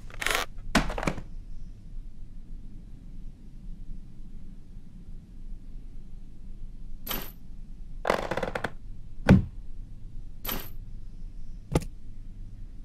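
Short chimes and clicks of game sound effects sound now and then.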